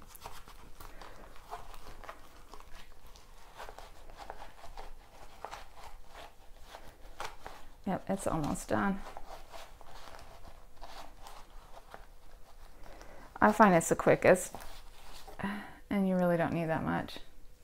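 Hands quietly handle a leather wallet on a soft cloth.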